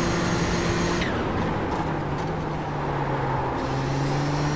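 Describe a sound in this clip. A racing car engine drops in pitch as the car brakes into a corner.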